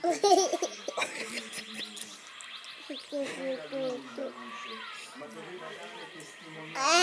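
An electronic toy plays beeping sounds.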